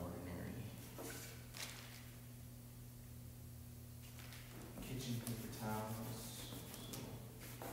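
A brush strokes and dabs paint on canvas.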